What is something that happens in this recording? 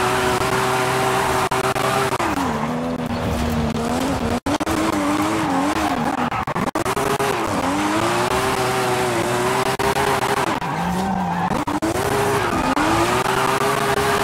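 Tyres squeal and screech on the road.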